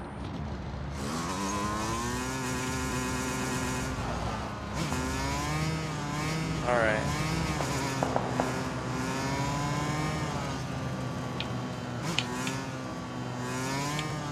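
A motorbike engine starts and revs up and down as the bike rides off.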